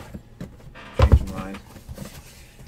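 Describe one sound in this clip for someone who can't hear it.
A cardboard box slides and thuds down onto a surface.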